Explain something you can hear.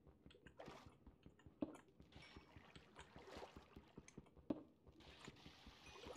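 A pickaxe chips at stone with quick, repeated knocks.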